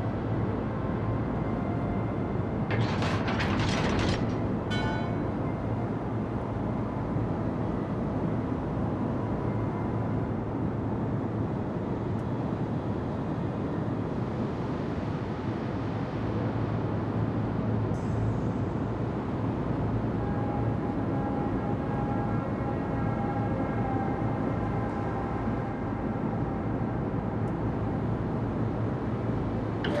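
Water rushes along a ship's hull.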